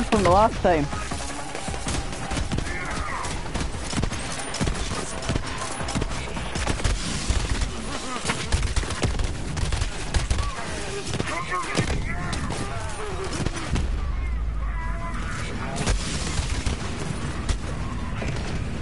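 Gunfire from a video game crackles and bangs rapidly.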